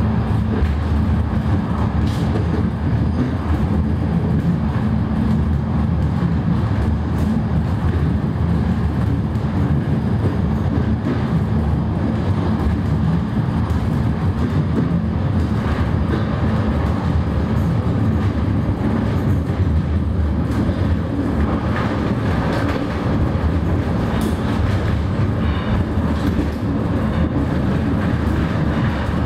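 A train rumbles steadily through a tunnel, heard from inside a carriage.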